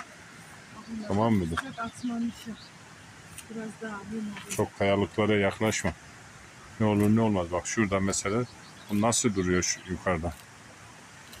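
An elderly woman talks calmly close by.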